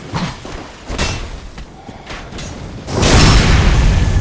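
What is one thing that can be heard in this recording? A sword swings and strikes an enemy.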